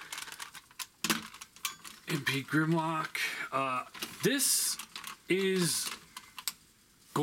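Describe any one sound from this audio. Plastic toy parts click and clack as hands move them.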